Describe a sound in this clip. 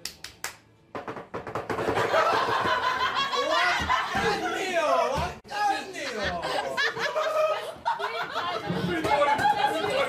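Young men and women cheer and shout excitedly close by.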